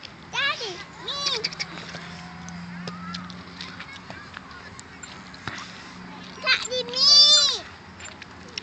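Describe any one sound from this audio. A toddler girl squeals and babbles close by.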